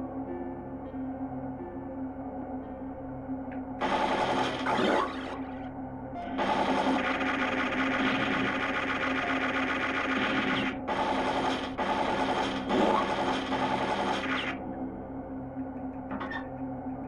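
Electronic game music plays through a small speaker.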